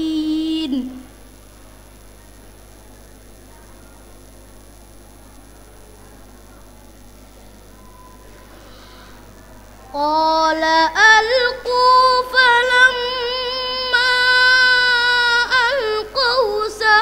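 A boy chants in a long, melodic voice through a microphone, pausing between phrases.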